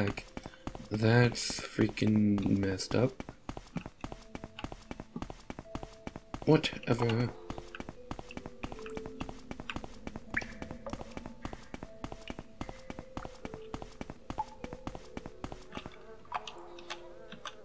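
Footsteps tread steadily.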